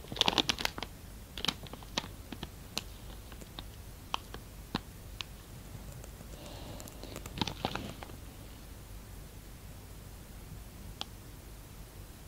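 A man speaks quietly into a microphone.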